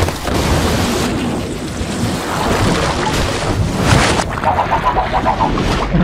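Bubbles gurgle and pop underwater.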